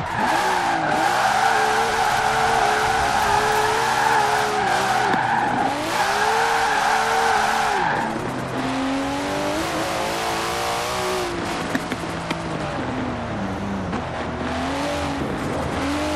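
A turbocharged straight-six sports car engine revs hard and shifts through the gears.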